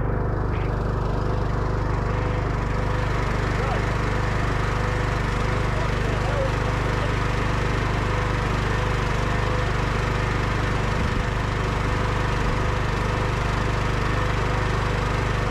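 A petrol engine runs with a steady, rumbling drone close by.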